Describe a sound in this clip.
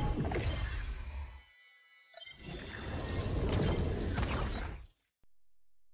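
A shimmering magical effect swells into a loud whooshing burst, then cuts off.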